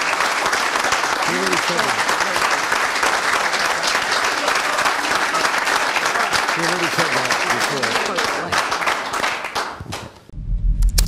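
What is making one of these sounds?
An audience claps and cheers loudly in a large room.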